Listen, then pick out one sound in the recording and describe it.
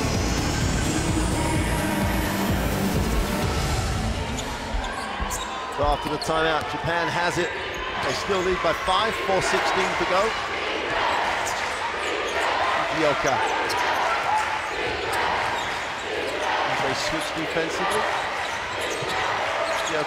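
A large crowd cheers and chatters in an echoing arena.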